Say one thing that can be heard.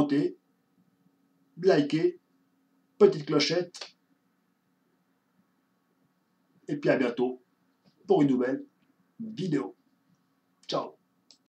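A man speaks close to a microphone in short, expressive bursts with pauses between them.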